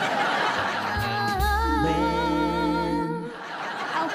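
Two men and a boy sing a short cheerful jingle together.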